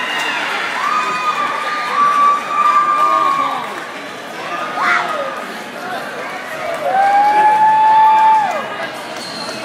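Girls in the crowd scream loudly with high, drawn-out voices.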